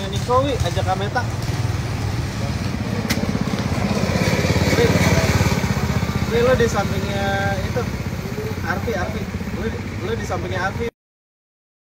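A go-kart engine buzzes as the kart drives around a track.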